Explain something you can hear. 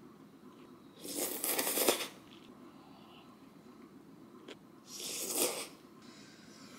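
A young woman slurps noodles loudly, up close.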